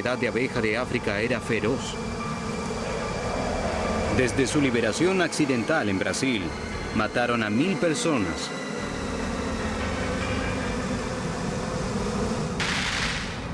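A swarm of bees buzzes close by.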